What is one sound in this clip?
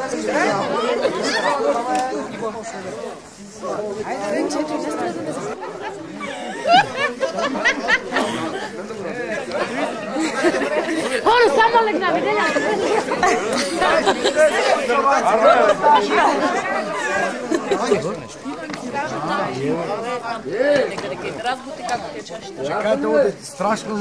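A crowd of men and women talks and laughs loudly nearby.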